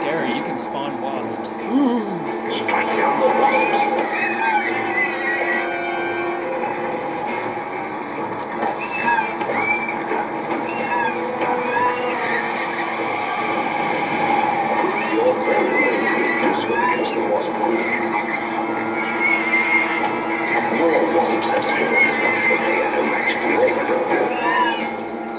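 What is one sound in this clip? Game sound effects of magic blasts and sword swings crackle and whoosh through a television speaker.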